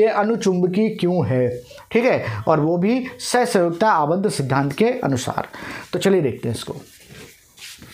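A middle-aged man speaks with animation, close by.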